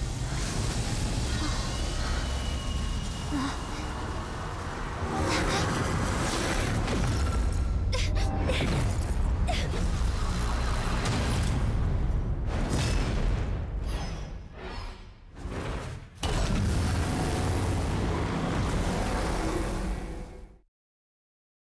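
A powerful energy beam roars.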